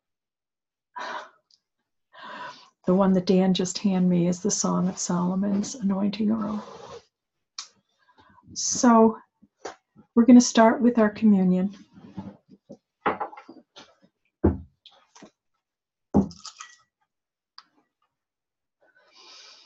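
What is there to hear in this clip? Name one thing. An older woman speaks calmly and close to a microphone, in pauses.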